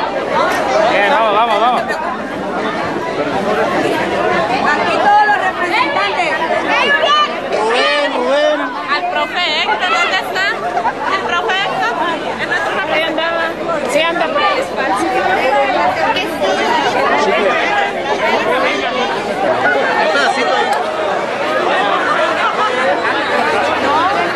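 A large crowd chatters and shouts loudly all around, close by.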